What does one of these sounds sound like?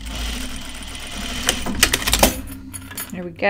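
A sewing machine runs with a fast, steady hum.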